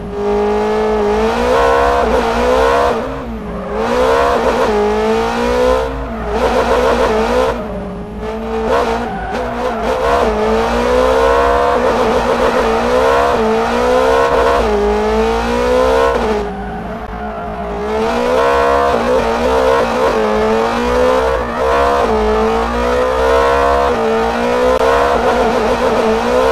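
Tyres squeal while a car slides sideways.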